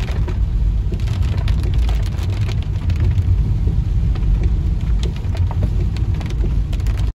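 Rain patters steadily on a car windscreen.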